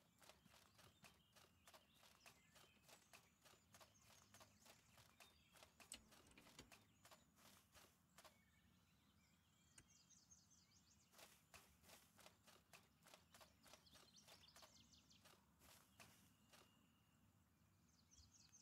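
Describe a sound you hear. Footsteps crunch steadily on dirt and grass.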